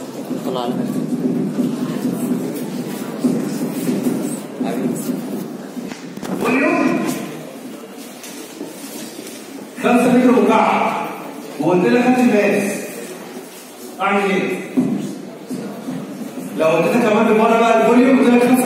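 A man lectures with animation through a microphone in an echoing room.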